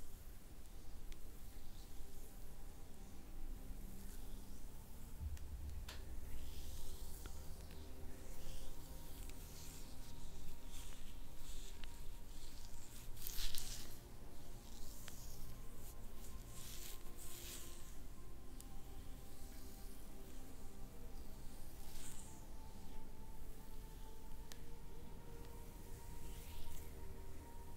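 Hands rub and press softly on bare skin, close by.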